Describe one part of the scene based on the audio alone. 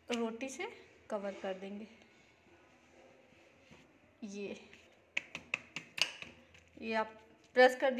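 Hands pat and press soft dough.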